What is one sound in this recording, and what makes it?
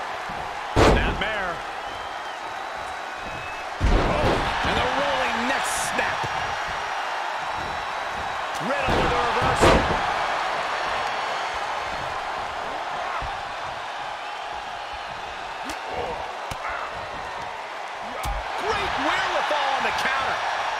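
A large arena crowd roars and cheers steadily.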